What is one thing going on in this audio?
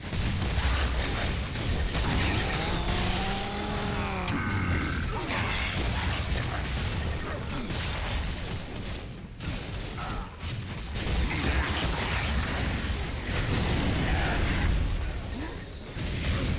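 Heavy gunfire rattles in rapid bursts.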